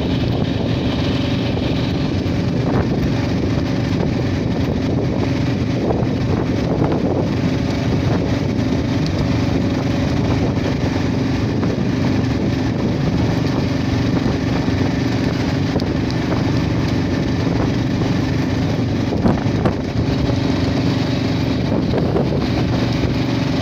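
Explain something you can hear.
A vehicle engine hums steadily while driving along a road.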